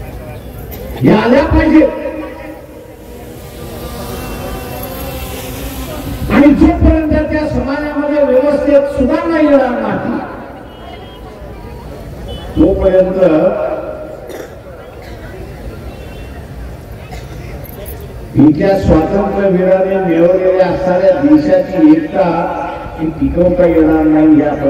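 An elderly man speaks slowly and forcefully through a loudspeaker, echoing outdoors.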